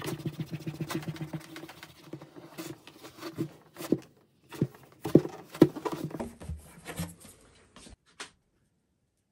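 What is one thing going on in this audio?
Fingers rub and press against a guitar's top.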